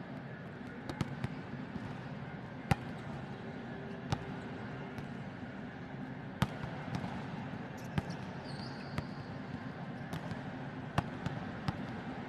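A volleyball is hit hard again and again in a large echoing hall.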